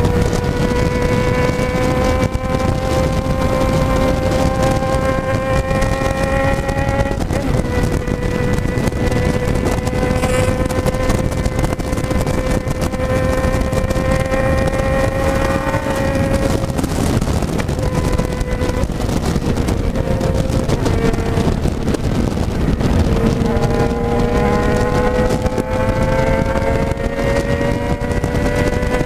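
A motorcycle engine hums steadily at speed, its pitch slowly rising and shifting with gear changes.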